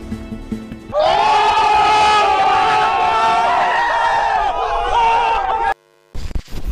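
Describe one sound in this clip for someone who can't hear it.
A group of young men shout and cheer excitedly close by.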